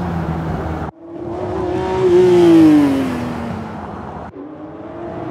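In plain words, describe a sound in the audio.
A car's engine screams as the car speeds past and fades.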